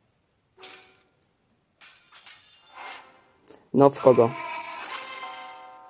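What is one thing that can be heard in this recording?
Bright magical chimes and whooshes ring out.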